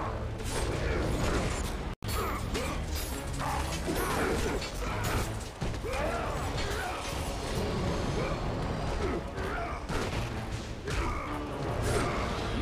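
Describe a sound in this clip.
Blades clash and slash with sharp metallic hits.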